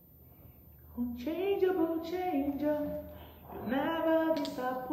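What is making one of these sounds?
A woman speaks with animation close to a phone microphone.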